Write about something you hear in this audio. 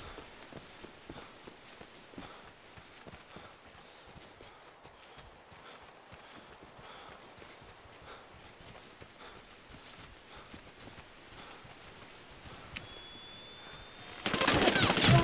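Footsteps patter quickly over dirt and gravel.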